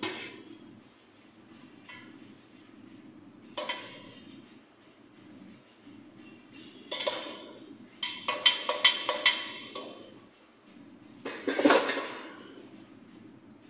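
Metal parts clink and knock sharply.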